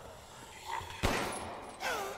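A pistol shot cracks sharply.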